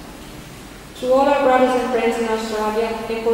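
A woman sings loudly through a microphone and loudspeakers in an echoing hall.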